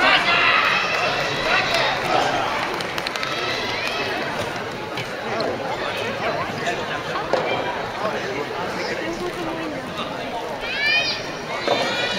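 Shoes squeak on a wooden court floor.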